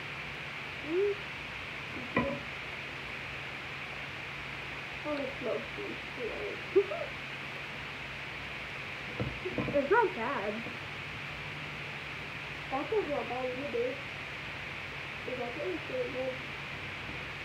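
A young girl talks in short bursts close by.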